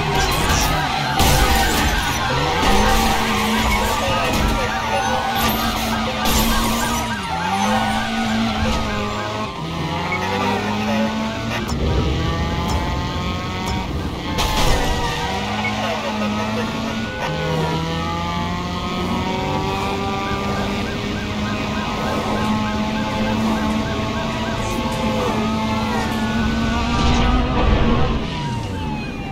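Police sirens wail up and down.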